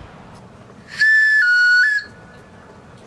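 A wooden game call blows a loud, high whistle that steps down and back up in pitch.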